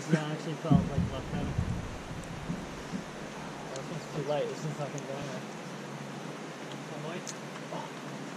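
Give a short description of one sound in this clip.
Young men talk and call out encouragement nearby, outdoors.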